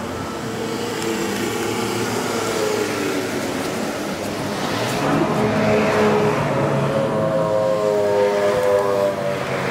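A screwdriver clicks and scrapes against small metal screws.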